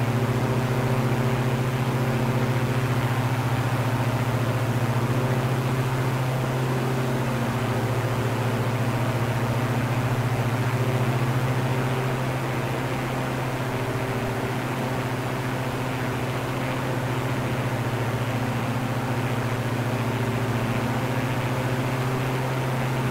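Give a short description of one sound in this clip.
A twin propeller plane's engines drone steadily, dipping slightly in loudness midway.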